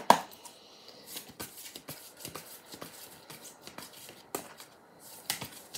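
Playing cards are shuffled by hand with quick, soft clicking taps.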